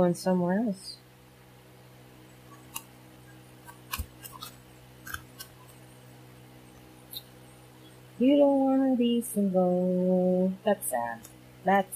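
Playing cards are shuffled and flicked by hand, with soft papery clicks.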